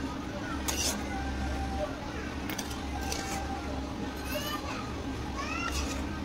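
A metal spoon scrapes against a metal pot.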